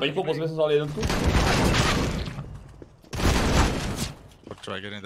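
Gunfire bursts loudly in a video game.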